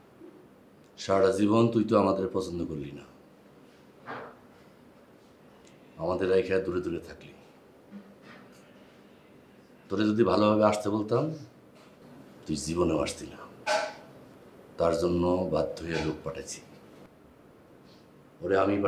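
A man speaks tensely and firmly, close by.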